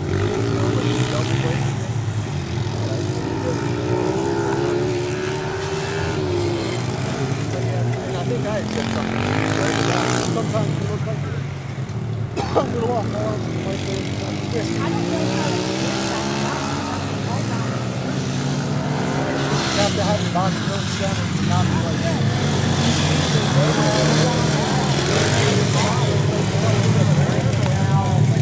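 Small dirt bike engines buzz and rev up and down.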